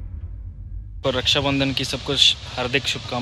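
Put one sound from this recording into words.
A young man speaks close to the microphone with animation.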